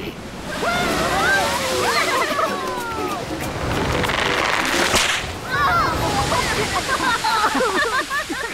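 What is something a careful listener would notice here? Cartoon animals cheer and whoop excitedly.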